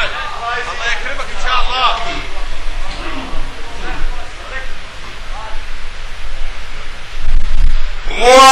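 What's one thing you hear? A man recites in a chanting voice through a microphone, in an echoing hall.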